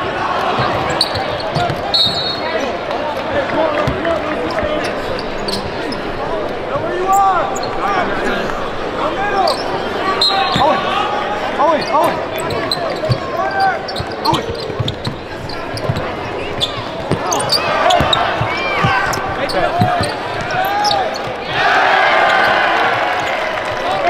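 Sneakers squeak sharply on a hardwood court in a large echoing arena.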